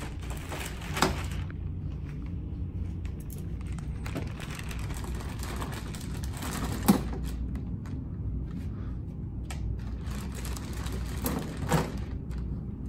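Tools clatter on a table.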